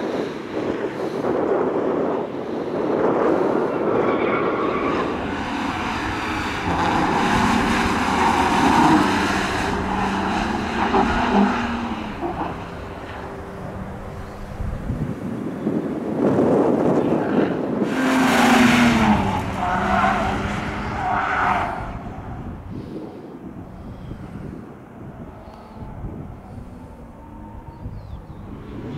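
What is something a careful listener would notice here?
A car engine revs hard, rising and falling.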